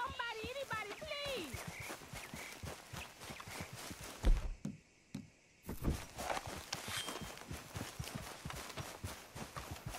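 A horse's hooves thud slowly on a dirt track.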